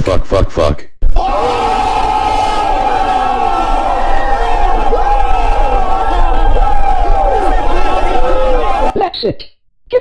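A crowd of young men shouts and cheers excitedly outdoors.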